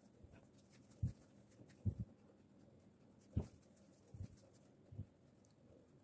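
Soft dough thumps dully as hands pat and press it.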